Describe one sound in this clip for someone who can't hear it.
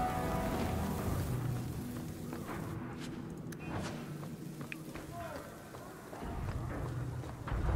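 Footsteps run quickly across a stone floor.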